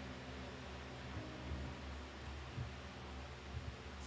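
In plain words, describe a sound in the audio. A roulette ball rattles as it settles into a pocket.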